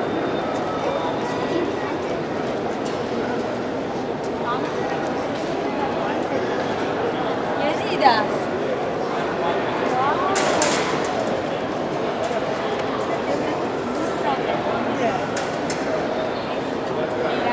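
A crowd of visitors chatters in a large echoing hall.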